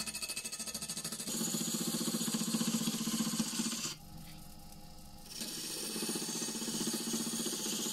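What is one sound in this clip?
A lathe motor hums steadily.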